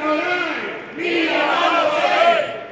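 A man shouts a chant close by.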